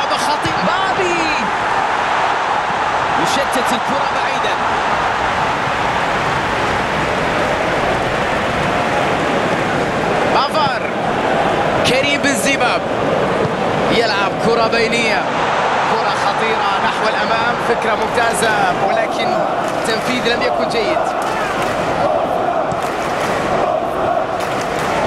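A large crowd roars and chants steadily in a stadium.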